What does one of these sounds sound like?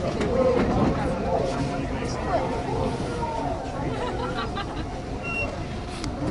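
Train wheels squeal against the rails.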